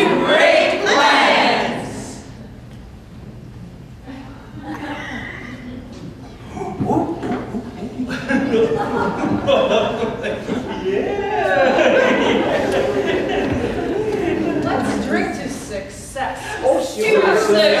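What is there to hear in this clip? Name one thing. A group of women sing and chatter together in a hall.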